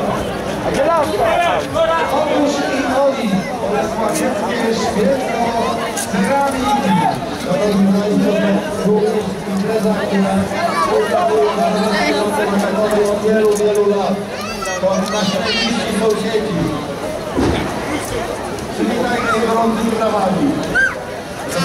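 A crowd of men and women chatter loudly all around outdoors.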